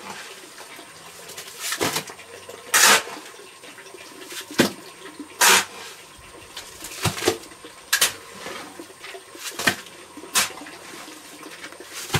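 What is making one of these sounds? Wet mortar slaps down onto a floor in heavy thuds.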